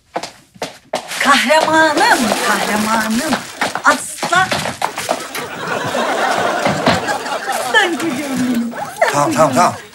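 A woman talks excitedly and laughs close by.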